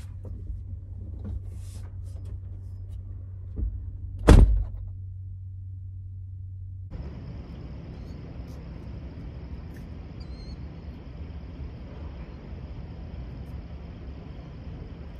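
A truck engine idles with a low, steady hum.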